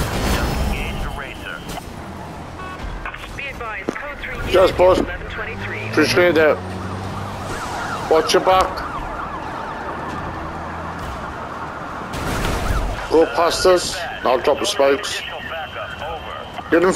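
A powerful car engine roars at high speed.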